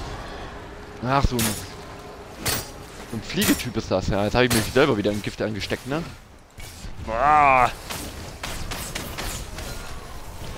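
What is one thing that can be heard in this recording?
Magic spells whoosh and crackle in quick bursts.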